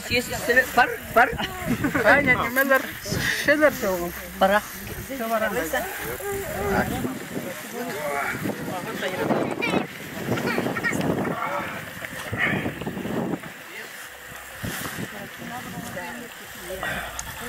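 Several men and women talk and chat nearby outdoors.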